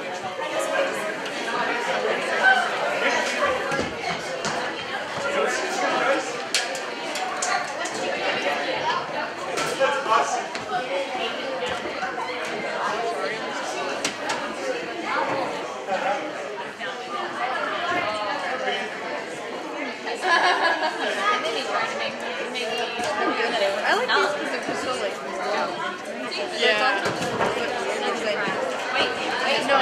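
A crowd of people chatters throughout.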